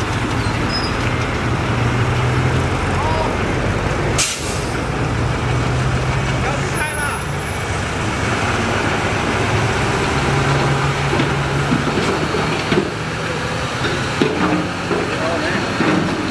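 A bulldozer engine rumbles and roars steadily close by.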